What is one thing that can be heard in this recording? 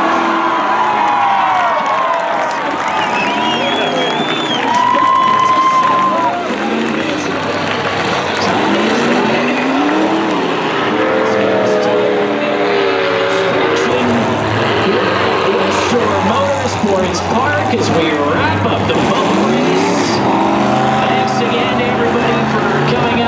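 Car engines rev and roar in an open arena.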